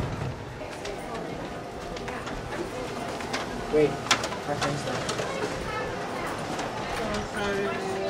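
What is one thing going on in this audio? Children talk and walk along an echoing hallway.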